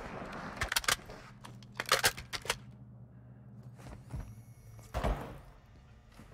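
Rifle shots fire in short, loud bursts.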